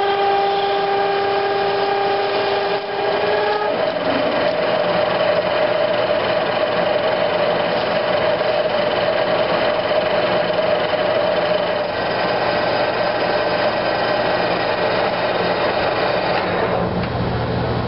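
A drill bit cuts into spinning plastic with a loud, shrill whine.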